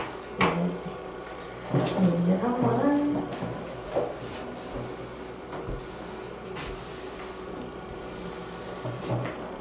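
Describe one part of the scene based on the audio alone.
A cloth wipes across a board.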